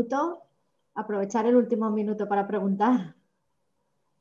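A woman speaks brightly over an online call.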